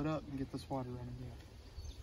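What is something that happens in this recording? A man speaks calmly close by.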